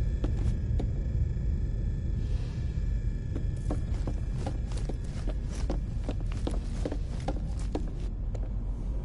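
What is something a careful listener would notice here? Footsteps tap quickly across a metal floor.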